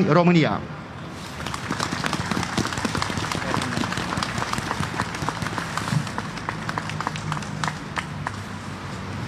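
Footsteps tap on stone paving.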